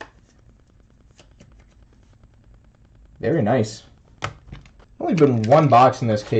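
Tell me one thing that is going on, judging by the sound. Trading cards click and rustle as they are handled.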